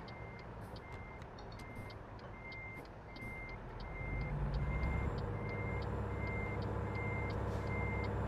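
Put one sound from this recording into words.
A truck's reversing alarm beeps steadily and evenly.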